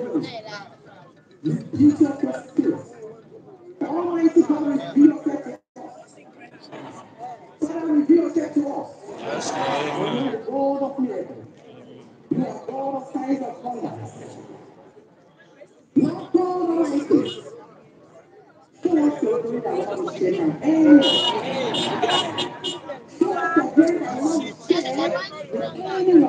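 A large crowd of men and women prays aloud together outdoors.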